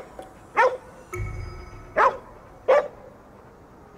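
A dog barks sharply a few times.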